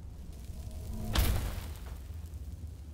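A magic spell bursts with a bright crackling flash.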